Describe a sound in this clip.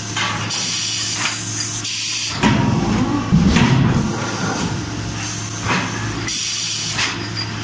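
Hydraulic valves hiss in short bursts.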